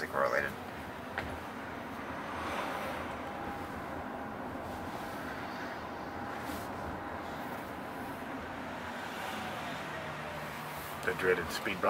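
A car drives along a street with a steady hum of road noise from inside the cabin.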